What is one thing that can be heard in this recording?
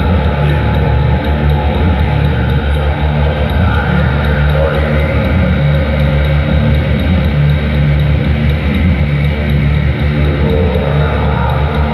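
A loud electric guitar plays heavy, distorted chords through an amplifier.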